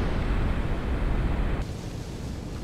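A jet engine roars loudly close by.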